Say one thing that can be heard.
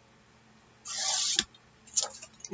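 A paper trimmer blade slides along, cutting through card.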